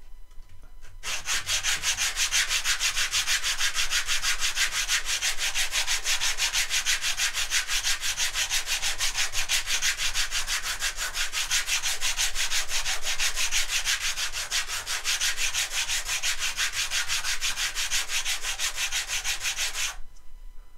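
A small wooden block is rubbed quickly back and forth on sandpaper with a steady, rasping scratch.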